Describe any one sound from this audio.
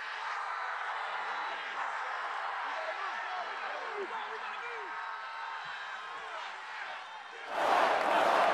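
A large crowd shouts and screams outdoors.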